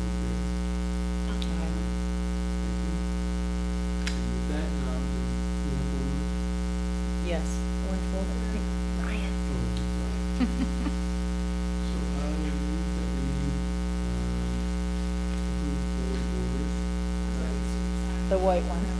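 A man speaks calmly, heard from a distance through a room microphone.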